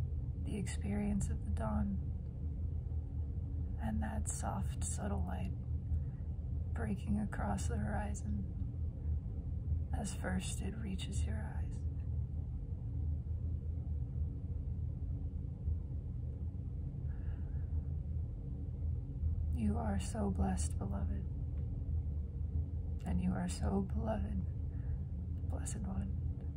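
A young woman speaks softly and close to the microphone, in short phrases with long pauses.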